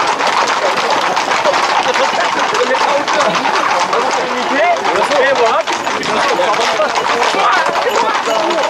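A crowd of men and women shouts and chatters close by, outdoors.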